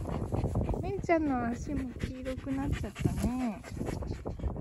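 A dog whines in high, wavering cries.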